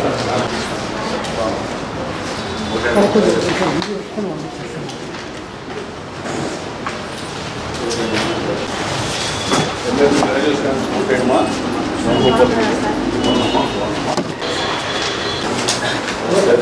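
Several men talk over one another nearby in a busy crowd.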